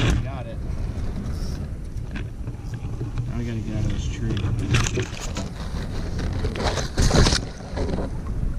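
Leafy branches rustle and scrape against a kayak.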